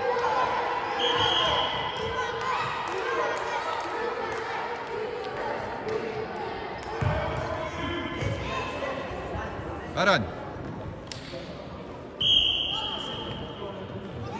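A referee's whistle blows short, sharp blasts.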